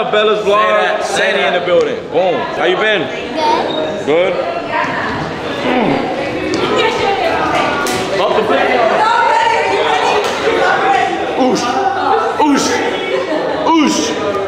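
A girl squeals and laughs excitedly.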